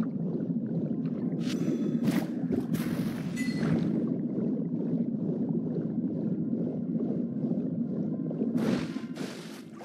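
Water rushes and churns loudly.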